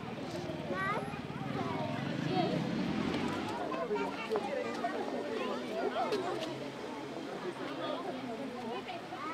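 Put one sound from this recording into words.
A crowd of adults and children chatters outdoors.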